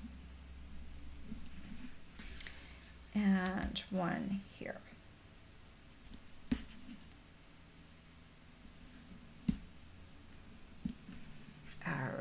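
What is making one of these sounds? Sticky tape peels and tears off a roll.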